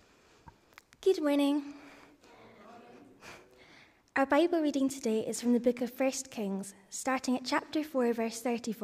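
A young woman reads aloud through a microphone in an echoing room.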